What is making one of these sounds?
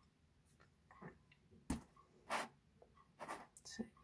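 A glass jar is set down on a hard surface with a knock.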